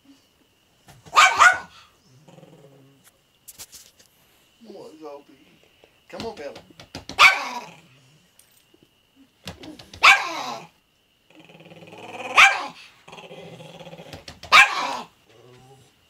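A small dog barks sharply in short bursts.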